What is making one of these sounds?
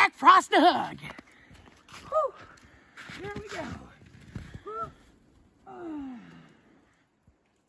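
A man shouts and yelps loudly up close.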